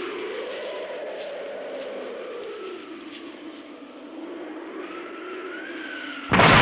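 An energy aura hums and drones with a wavering pitch.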